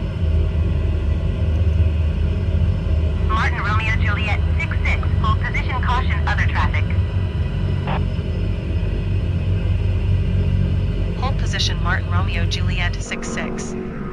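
A propeller plane's engine drones steadily and low.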